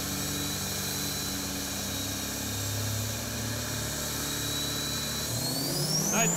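A pickup truck engine idles with a low, steady rumble.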